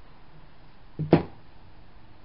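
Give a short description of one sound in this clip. A hand taps sharply on a window pane close by.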